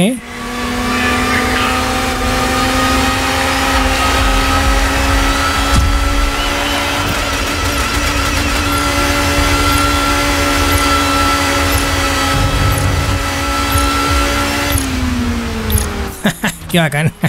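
A race car engine roars at high revs, then drops in pitch as the car slows.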